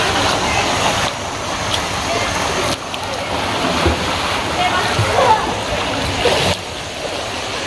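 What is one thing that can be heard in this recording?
Water splashes as a child swims close by.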